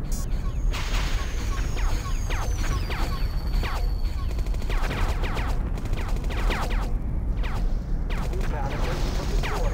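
Cannon fire and explosions crack in quick bursts.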